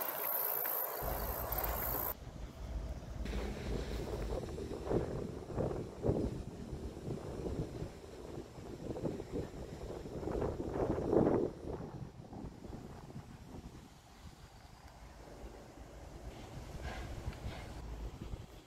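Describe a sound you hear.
Wind gusts outdoors.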